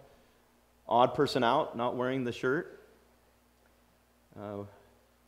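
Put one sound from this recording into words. A middle-aged man speaks calmly into a microphone in a room with a slight echo.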